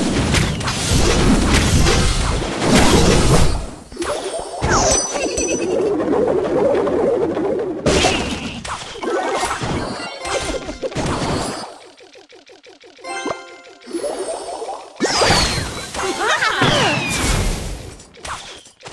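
Game sound effects of small troops fighting and towers firing play.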